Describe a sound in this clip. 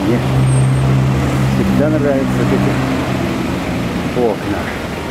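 A bus engine rumbles as the bus drives past.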